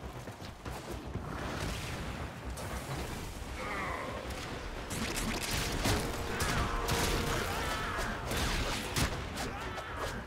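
Blades swing and slash with sharp whooshes.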